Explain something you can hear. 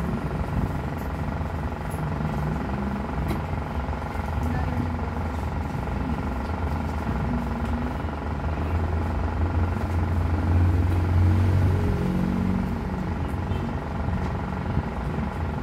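An electric fan hums and whirs steadily nearby.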